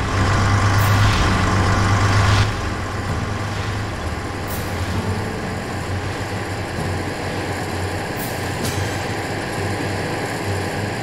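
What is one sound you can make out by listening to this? A vehicle engine rumbles steadily as it drives along a road.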